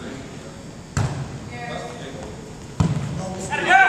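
A volleyball is struck with hands.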